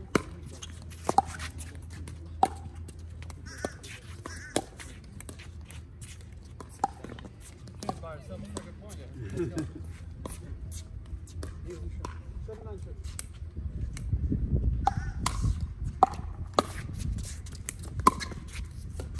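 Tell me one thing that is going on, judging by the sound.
Paddles pop sharply against a plastic ball in a back-and-forth rally.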